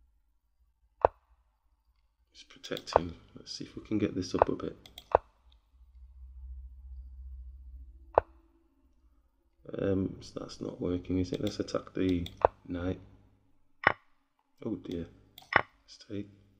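Digital chess pieces click sharply as moves are made.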